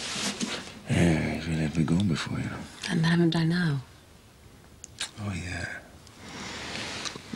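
A man and a woman murmur softly to each other.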